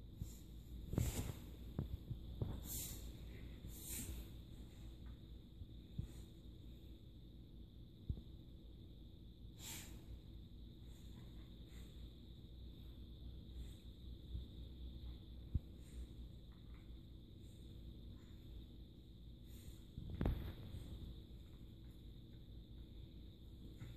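A dog wriggles and rustles a soft blanket.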